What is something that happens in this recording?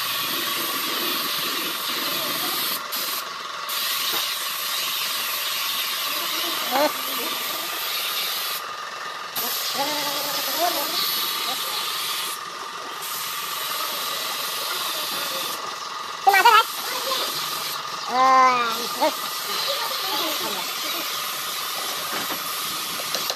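A spray gun hisses steadily as it sprays, stopping briefly now and then.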